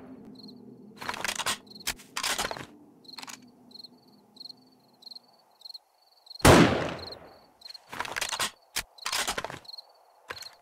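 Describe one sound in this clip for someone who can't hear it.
A rifle bolt clacks and rattles as it is reloaded.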